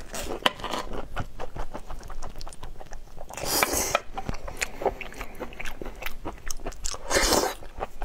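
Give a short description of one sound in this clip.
A man chews and smacks wetly up close.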